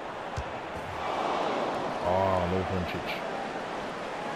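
A stadium crowd swells into a loud cheer.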